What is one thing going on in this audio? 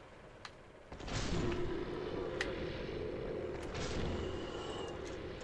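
A heavy blow lands with a loud crash and rumble.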